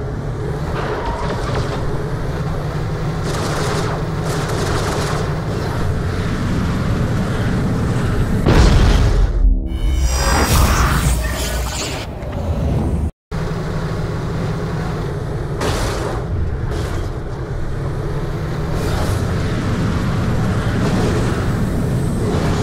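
A vehicle engine rumbles steadily as it drives.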